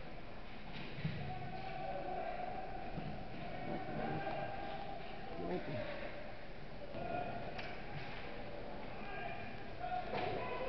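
Hockey sticks and pucks clack sharply in a large echoing rink.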